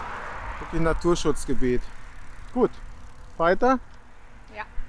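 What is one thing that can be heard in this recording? A middle-aged man talks with animation close by, outdoors.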